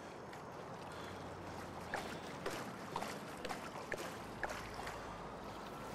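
Water splashes as a man wades through it.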